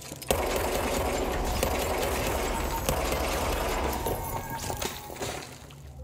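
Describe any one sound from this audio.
Gunshots and blasts boom and echo.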